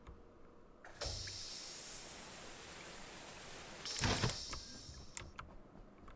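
A gas spray hisses steadily for a few seconds.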